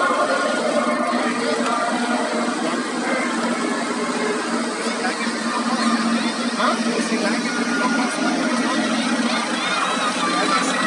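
A truck engine idles with a low hum.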